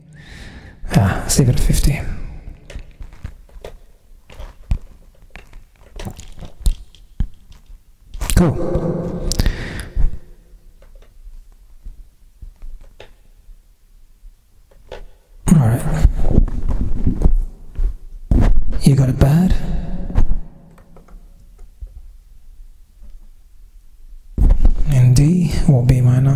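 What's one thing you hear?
A man sings in bursts close to a microphone.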